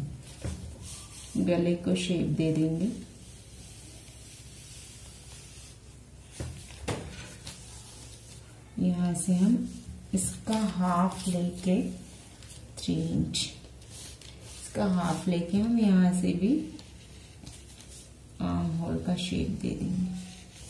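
A marker pen scratches along paper.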